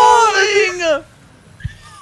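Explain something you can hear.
A loud electronic blast with falling tones sounds in a video game.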